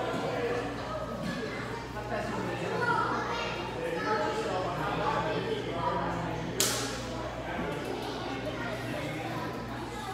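Many children and adults chatter in an echoing room.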